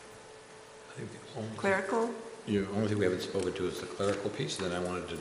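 A woman speaks calmly into a microphone in a room.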